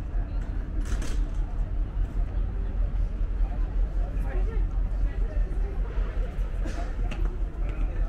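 Men and women chatter in the distance.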